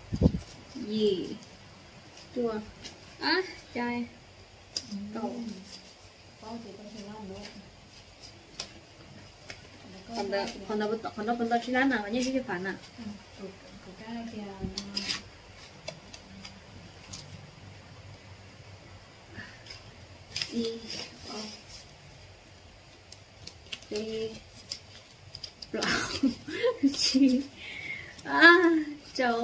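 Paper banknotes rustle and flick as a young woman counts them.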